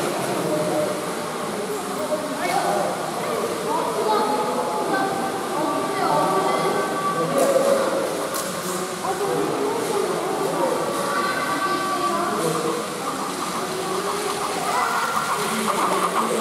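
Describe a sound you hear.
Children chatter and call out across a large echoing hall.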